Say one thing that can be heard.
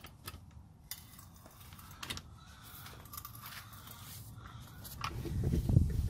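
A breaker bar loosens a wheel nut.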